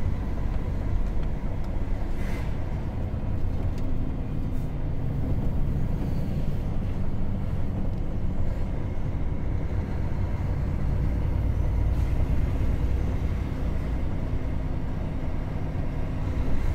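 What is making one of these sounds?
Tyres roll and rumble on asphalt.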